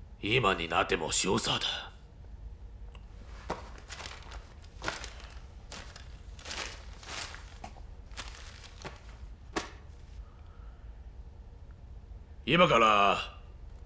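A middle-aged man speaks calmly and firmly, close by.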